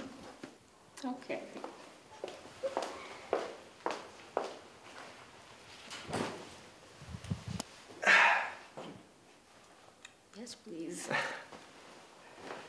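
A young woman laughs softly, close by.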